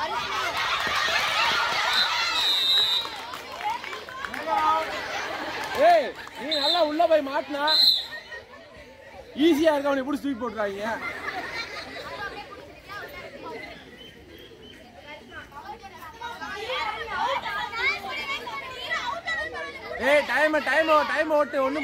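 Young girls shout and cheer with excitement outdoors.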